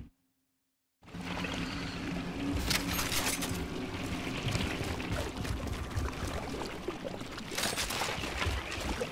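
Footsteps splash and rustle through shallow water and tall grass.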